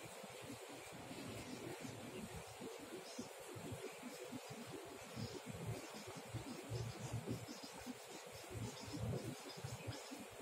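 A marker squeaks faintly across a whiteboard.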